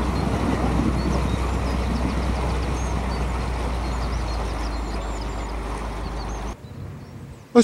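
Wind gusts and rumbles against the microphone outdoors.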